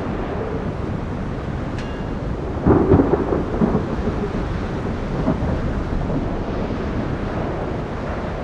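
Water rushes along a ship's hull.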